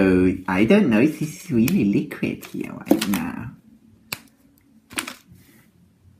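Foil and paper wrapping crinkle as hands handle it.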